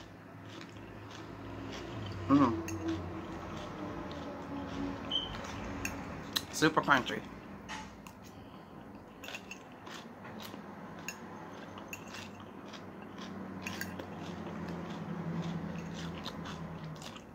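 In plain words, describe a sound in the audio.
A fork scrapes and clinks on a plate.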